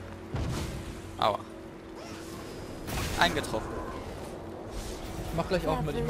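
Magic spells whoosh and crackle in a fight.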